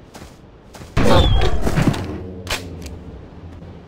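A shotgun fires a loud blast that echoes away.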